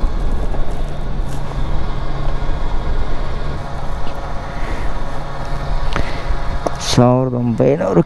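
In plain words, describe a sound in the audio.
A motorcycle engine idles steadily.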